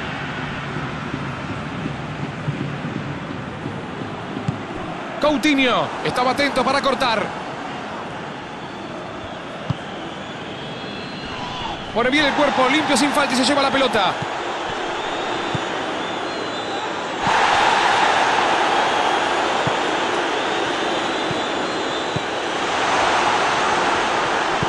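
A large stadium crowd murmurs and cheers steadily, swelling louder later on.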